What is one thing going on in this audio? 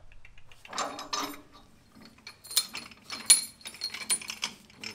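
A metal wrench clinks against a tractor's engine parts.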